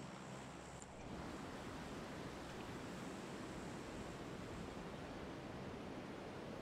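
Wind rushes past during a free fall.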